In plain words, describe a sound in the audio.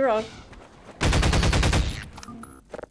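A gun fires a rapid burst.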